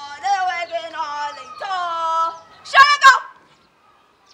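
A young woman sings loudly and expressively nearby.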